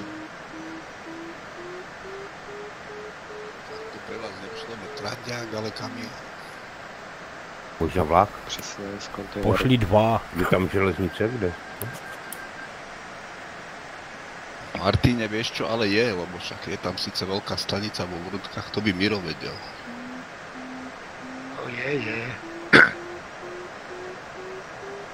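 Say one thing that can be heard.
A variometer beeps in quick pulses that rise and fall in pitch.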